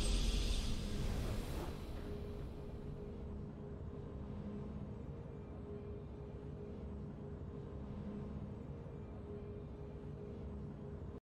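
Triumphant game music plays with a loud swell that fades into a low, steady hum.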